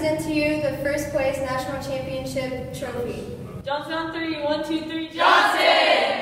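Young women speak together in unison through a microphone.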